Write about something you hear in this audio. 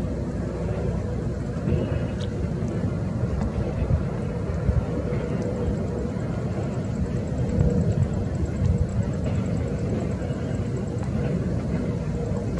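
A jet airliner's engines roar steadily as it descends.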